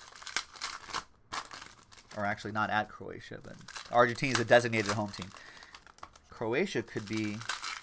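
Card wrappers crinkle and rustle as they are torn open.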